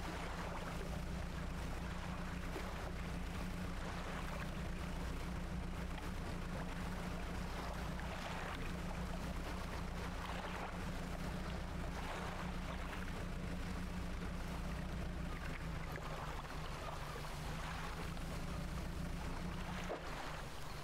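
A boat engine chugs steadily.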